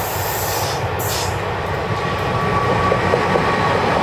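An electric locomotive hums loudly as it passes close by.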